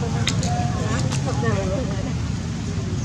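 A baby monkey squeals and whimpers close by.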